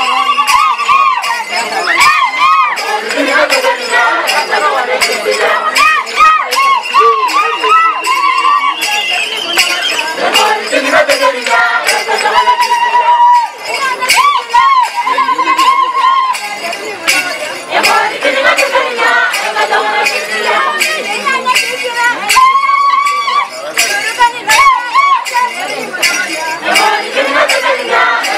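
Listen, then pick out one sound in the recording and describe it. A group of women sing together loudly in a chant outdoors.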